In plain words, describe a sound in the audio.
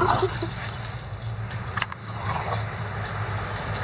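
Dogs' paws patter and rustle across grass.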